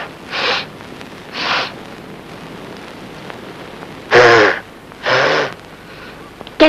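A woman gasps and sobs loudly.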